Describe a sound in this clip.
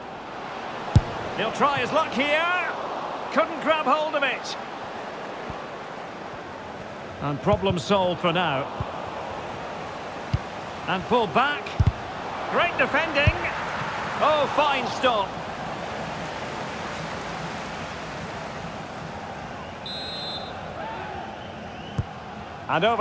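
A football is kicked with short thuds.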